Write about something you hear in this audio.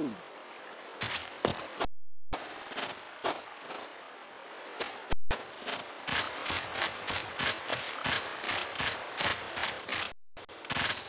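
A cartoon character's footsteps patter quickly on sand and grass.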